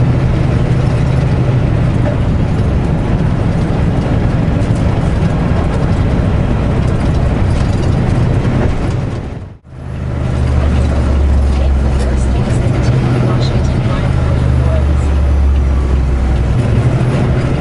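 Tyres roll along a paved road with a steady rushing noise.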